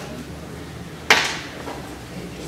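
A microphone thumps loudly as it is handled.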